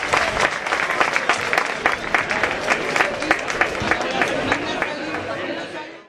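A brass band plays a lively tune outdoors through loudspeakers.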